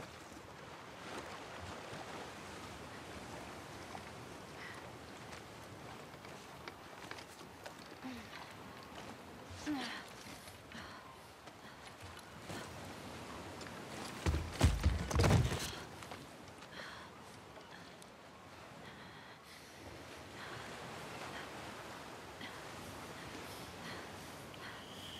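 A young woman breathes heavily.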